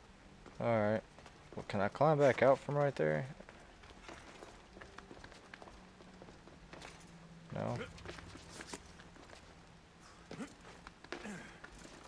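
Footsteps scrape on rocky ground.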